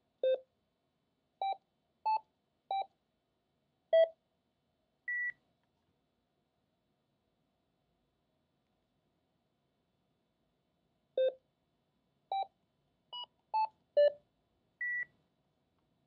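Keypad buttons on a radio microphone beep with short tones.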